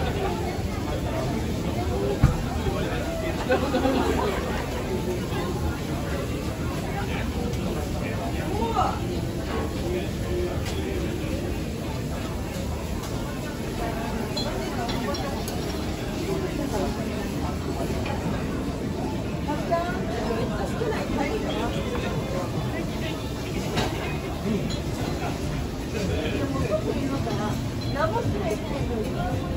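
A crowd of people murmurs and chatters indoors.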